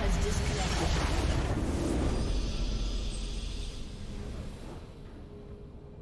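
A triumphant game fanfare rings out and fades.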